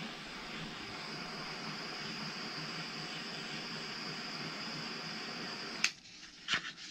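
A blowtorch roars with a steady hiss.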